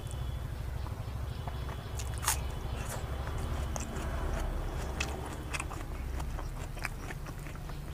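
Fingers tear at soft meat and onion.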